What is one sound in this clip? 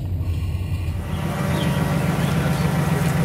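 A vehicle engine runs loudly close by.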